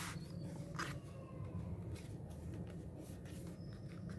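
A metal ruler scrapes along paper.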